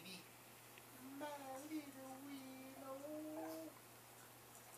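A baby coos and babbles.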